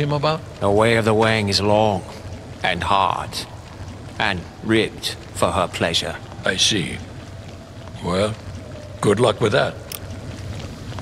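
An elderly man speaks calmly and deeply.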